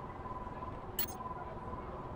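A short, sharp menu click sounds once.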